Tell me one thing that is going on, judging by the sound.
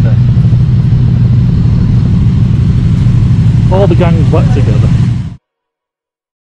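Motorcycle engines rumble and idle.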